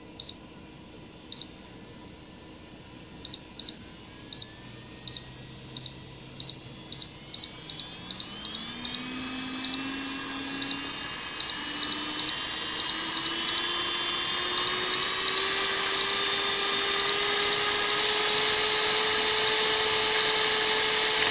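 A control unit beeps with short, sharp tones as the speed is raised.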